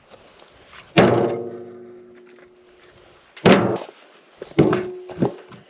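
Split logs thud and clang into a metal wheelbarrow, ringing briefly.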